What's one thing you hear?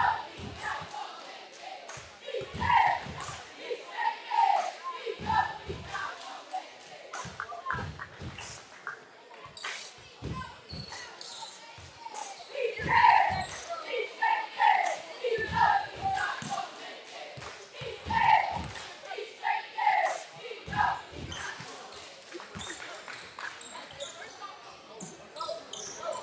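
A crowd of spectators shouts and chatters in an echoing gym.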